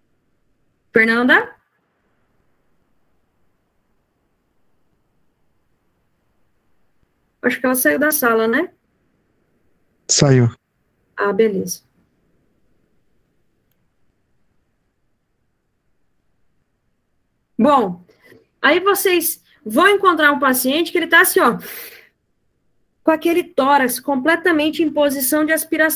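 A young woman speaks calmly through an online call, in short bursts with pauses.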